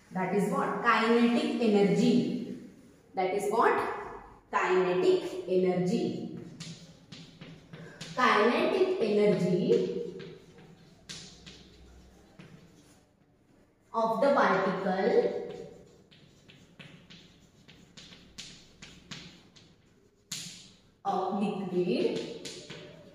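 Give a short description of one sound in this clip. A woman speaks calmly and clearly, as if teaching, close by.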